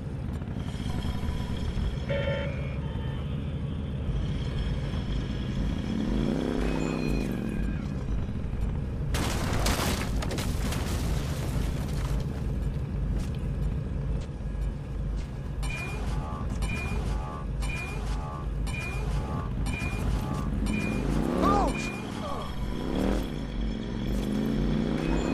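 A motorcycle engine rumbles steadily and revs up and down.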